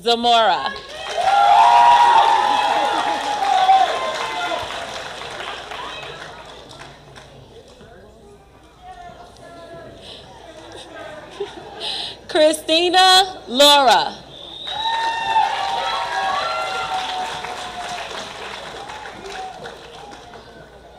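People applaud and cheer in a large hall.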